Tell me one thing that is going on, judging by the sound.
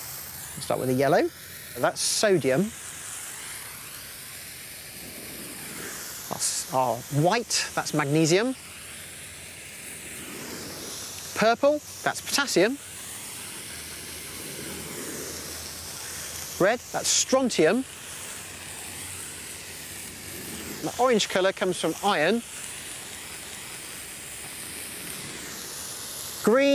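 Fireworks whistle shrilly in short bursts.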